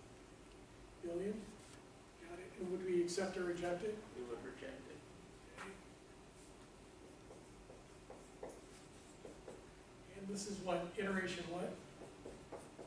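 A man lectures calmly in an echoing room.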